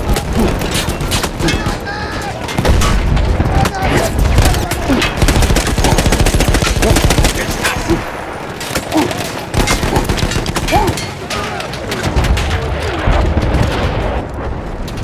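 Loud explosions boom and rumble nearby.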